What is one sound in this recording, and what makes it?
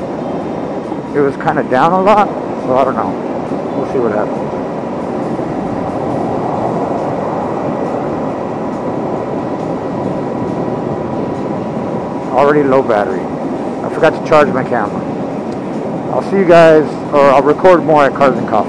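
A car drives along a highway with a steady rumble of tyres on the road.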